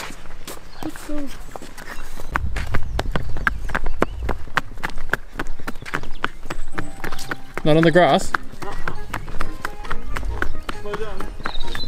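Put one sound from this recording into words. Hooves clop on paving stones.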